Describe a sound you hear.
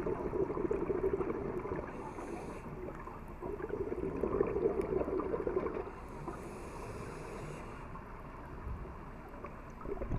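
A muffled underwater rumble and hiss goes on throughout.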